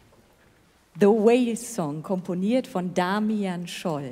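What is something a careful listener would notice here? A woman speaks into a microphone, heard through loudspeakers in a large hall.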